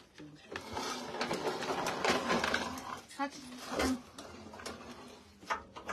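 Fabric rustles as a dress is handled.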